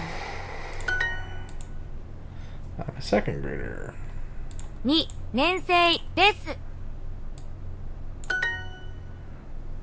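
A bright chime rings out from a computer.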